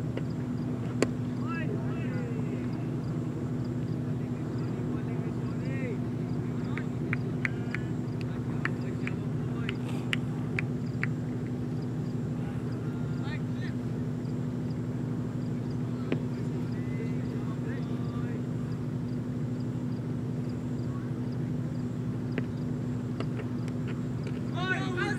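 A cricket bat cracks against a leather ball outdoors.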